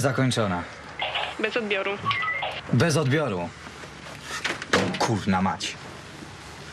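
A second man answers in a calm voice.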